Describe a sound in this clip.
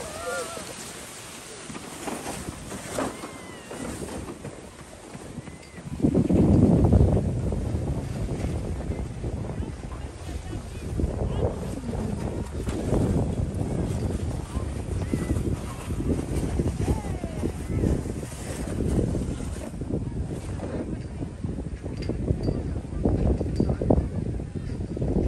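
Footsteps crunch in snow close by.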